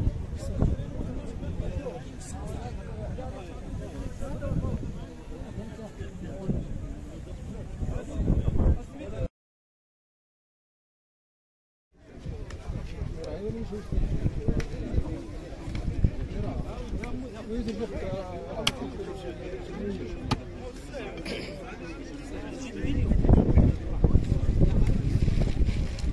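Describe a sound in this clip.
A crowd of men talk over each other nearby, outdoors.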